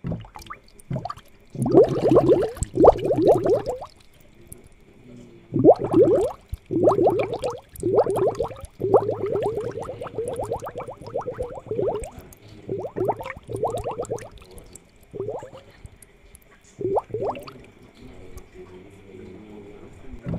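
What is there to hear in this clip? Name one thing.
Water bubbles softly in a fish tank.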